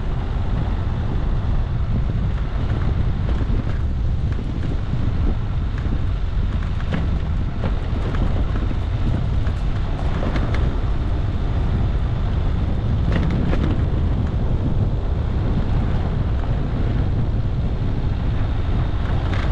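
Tyres crunch over a rough dirt track.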